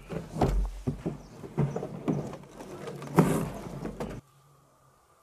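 A large plastic water tank scrapes and thumps against the ground.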